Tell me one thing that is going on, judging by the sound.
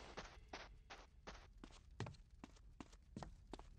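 Footsteps thump up stairs.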